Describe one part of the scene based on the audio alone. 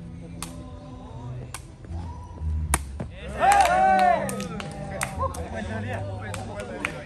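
Men shout and call out outdoors during a game.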